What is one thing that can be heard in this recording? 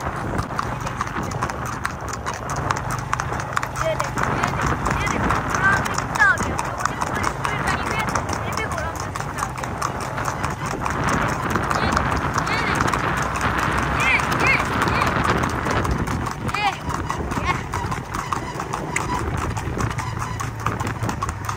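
A horse's hooves clatter rapidly on a paved road.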